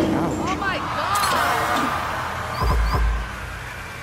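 A small group of adults cheer and shout.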